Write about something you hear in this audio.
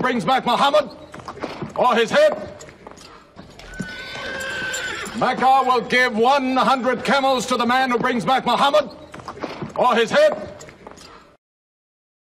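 A man speaks loudly and forcefully, close by.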